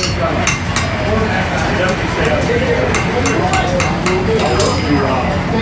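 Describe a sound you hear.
A hammer strikes metal on an anvil in sharp ringing blows.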